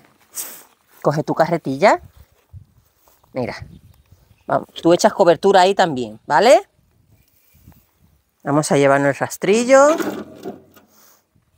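A woman talks nearby with animation.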